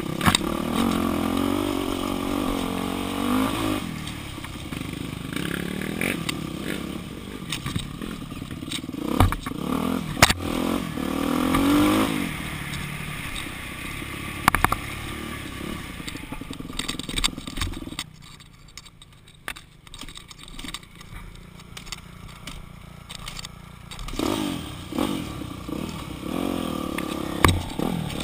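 Tyres crunch and bump over a dirt trail.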